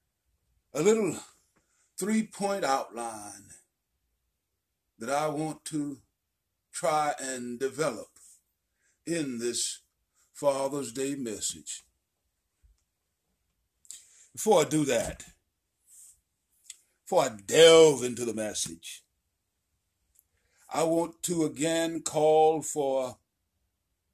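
An elderly man speaks close to a phone microphone in short, emphatic phrases with pauses between them.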